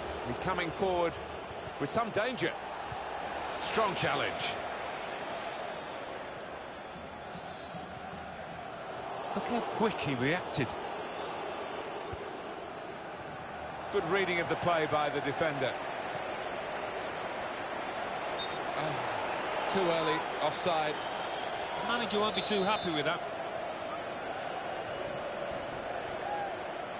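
A large stadium crowd murmurs and cheers steadily in the distance.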